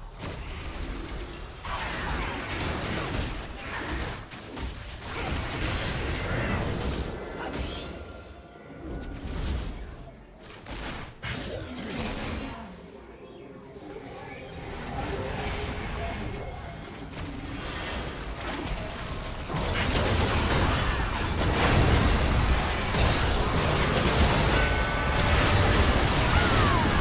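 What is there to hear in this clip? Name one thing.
Spell and punch effects of a video game battle crash and whoosh.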